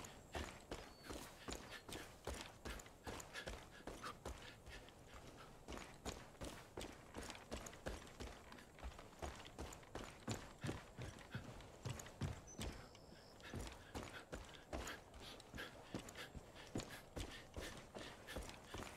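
Footsteps crunch quickly over dirt and gravel.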